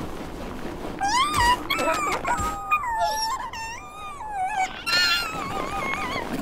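Cartoon seals make high-pitched calls.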